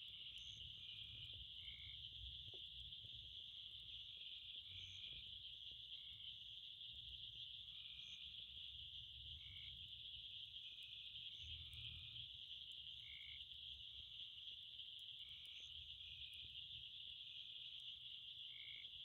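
A wood fire burns and crackles softly.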